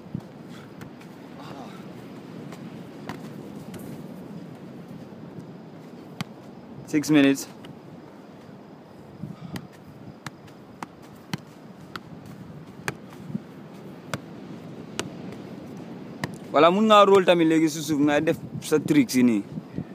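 A football thuds as it is kicked and juggled.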